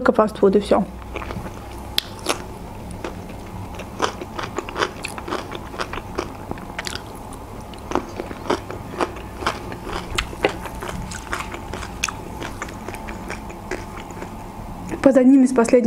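A young woman chews crunchy food loudly and close up.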